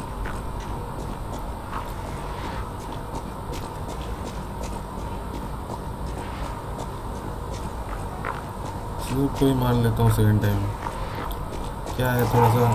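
Footsteps patter quickly on cobblestones.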